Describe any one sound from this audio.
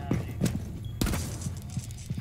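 A gun fires a short burst.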